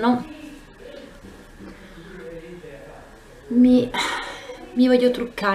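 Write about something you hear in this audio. A woman speaks calmly and close by, as if into a microphone.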